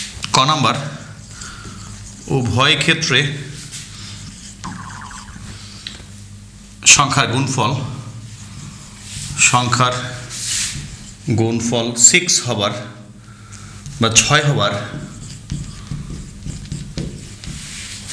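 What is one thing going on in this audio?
A middle-aged man speaks calmly and clearly through a microphone.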